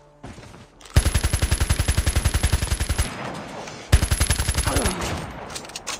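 Rapid bursts of automatic gunfire ring out close by.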